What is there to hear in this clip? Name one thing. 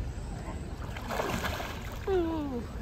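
Water splashes as a man slides into a pool.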